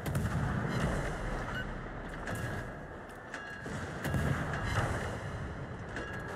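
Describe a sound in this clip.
Heavy naval guns boom in repeated deep blasts.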